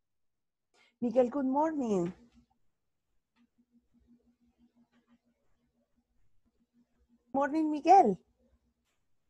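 A middle-aged woman speaks with animation over an online call.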